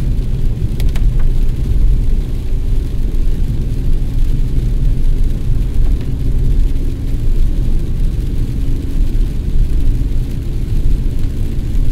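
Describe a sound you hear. A windshield wiper thumps and squeaks across the glass.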